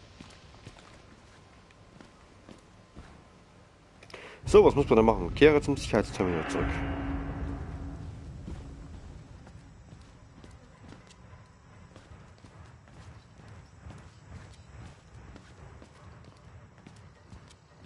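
Footsteps tap along a hard floor in an echoing corridor.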